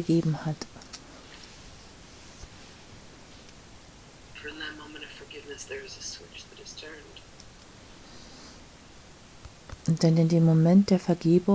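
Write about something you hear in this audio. A woman speaks warmly and close to a microphone.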